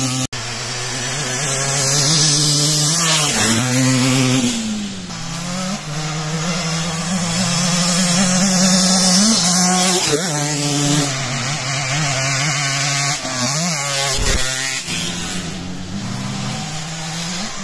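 A dirt bike engine revs hard and roars past close by, rising and falling in pitch.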